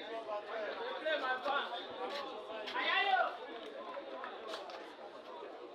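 Young women shout and call out to each other outdoors, some way off.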